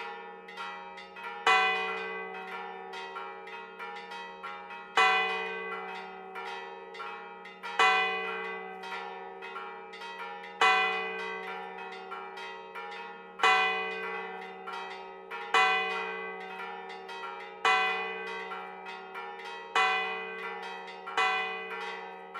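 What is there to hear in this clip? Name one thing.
Church bells ring out in a steady peal, each stroke ringing on and fading.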